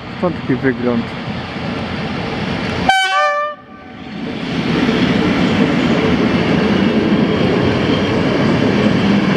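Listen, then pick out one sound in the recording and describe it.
An electric train approaches and rumbles past close by.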